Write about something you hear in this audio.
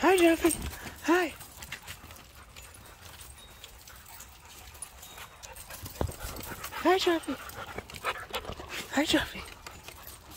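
A dog barks sharply close by, a few times.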